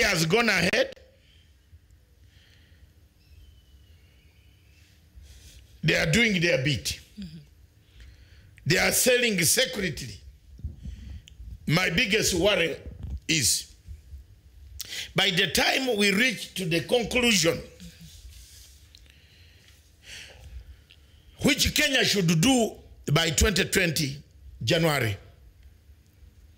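A middle-aged man speaks with animation into a close microphone, in bursts with pauses.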